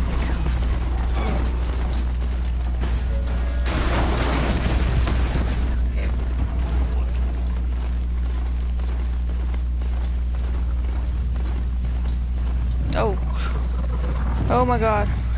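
A mechanical mount clanks and thuds as it trots along.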